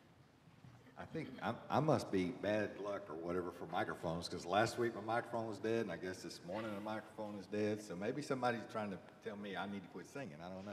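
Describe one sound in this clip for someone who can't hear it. A man speaks calmly and loudly through a microphone in an echoing hall.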